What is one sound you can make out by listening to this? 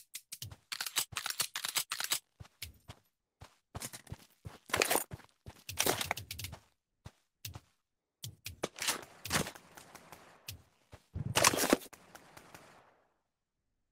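Guns clack and clatter as they are handled and dropped.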